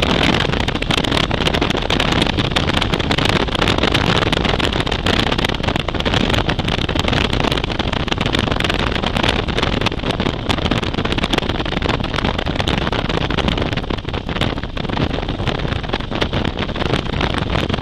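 Wind roars loudly against a moving motorcycle.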